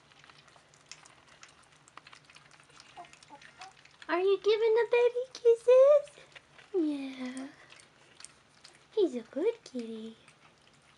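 Puppies suckle with small wet smacking sounds.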